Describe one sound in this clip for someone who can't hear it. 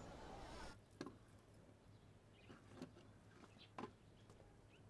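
Coins clink softly.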